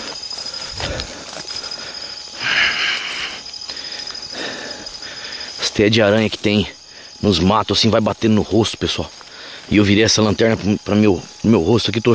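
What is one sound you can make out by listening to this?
Dry grass rustles and brushes close by.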